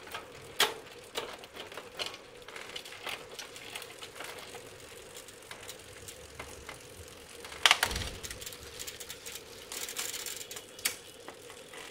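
Bicycle gears click as they shift.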